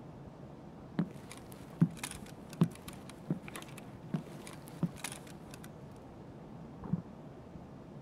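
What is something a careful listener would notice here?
Footsteps thud slowly on a wooden floor indoors.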